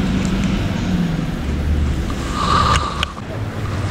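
Pebbles crunch underfoot.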